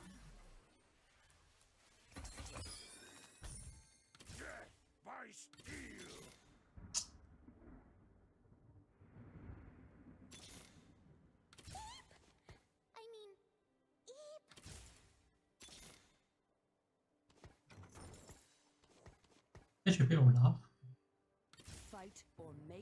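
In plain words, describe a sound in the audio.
Short electronic game sounds chime and whoosh now and then.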